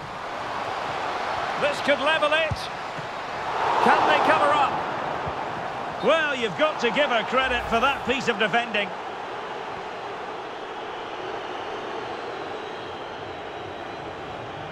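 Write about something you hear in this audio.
A stadium crowd murmurs and cheers steadily in a large open space.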